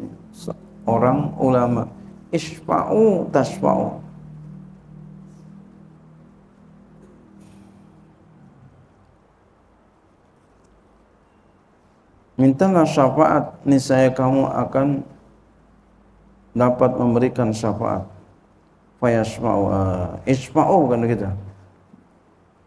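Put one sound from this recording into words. A man speaks calmly into a microphone in an echoing hall, with pauses.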